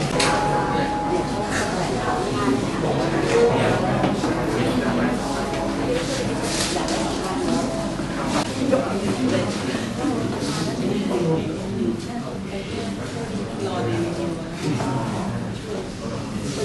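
A group of women and men chatter and talk over one another nearby.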